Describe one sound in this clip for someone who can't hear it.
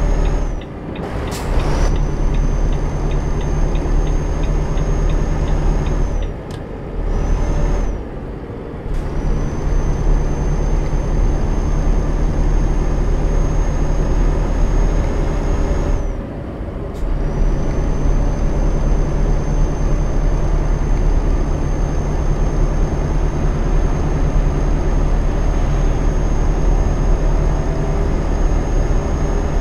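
Tyres roll on a motorway with steady road noise.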